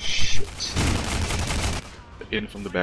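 An energy weapon fires with a crackling blast.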